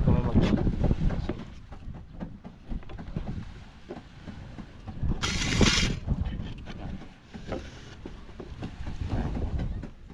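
A paintbrush scrapes against a board.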